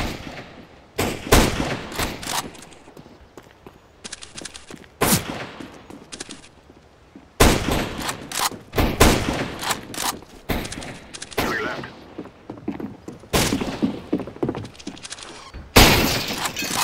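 Rifle shots crack loudly, one at a time, with a short echo after each.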